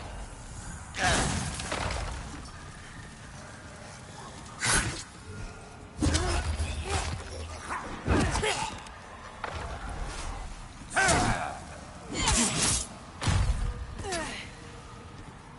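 A sword clashes and slashes in combat.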